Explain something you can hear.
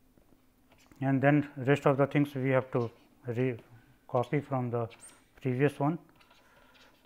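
An elderly man speaks calmly and steadily into a close microphone.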